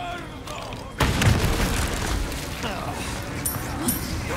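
A second explosion bursts with a fiery roar.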